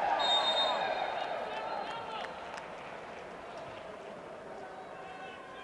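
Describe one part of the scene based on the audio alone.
A large stadium crowd roars and then gradually quiets down.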